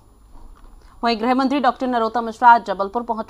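A woman reads out the news through a microphone, calmly and clearly.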